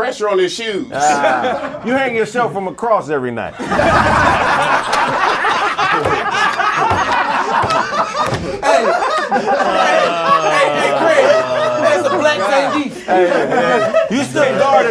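A group of men laugh loudly and cheer.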